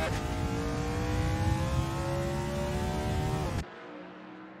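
A race car engine roars loudly at high speed, its pitch slowly rising.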